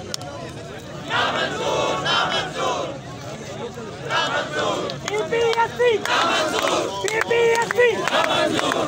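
A crowd of men chants and shouts outdoors.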